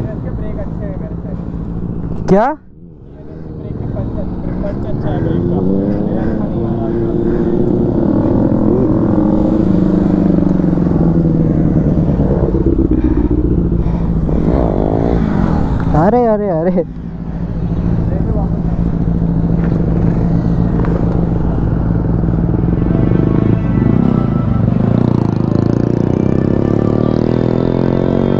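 Motorcycle engines roar and rev up as riders pass by close.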